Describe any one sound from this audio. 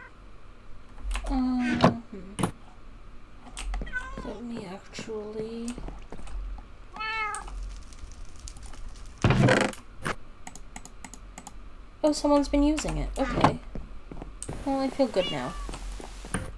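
Game chests click open and shut.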